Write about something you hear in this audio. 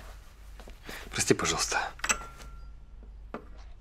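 Glasses clink together.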